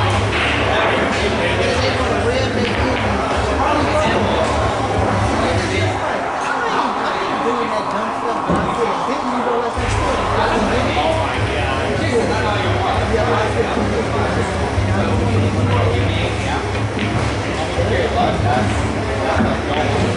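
A cue stick strikes a pool ball.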